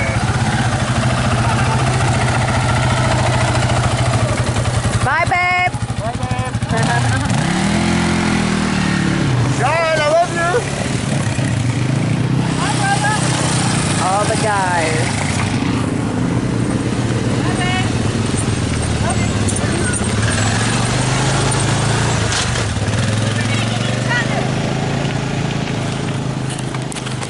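A quad bike engine rumbles steadily nearby.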